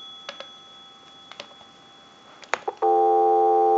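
A telephone handset is lifted with a clatter.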